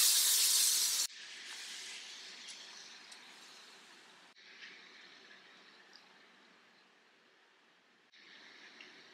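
Boiling sugar syrup bubbles and hisses in a pan.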